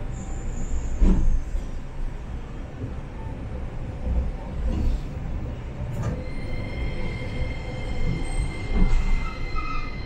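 Tram wheels clatter and thump over the rails.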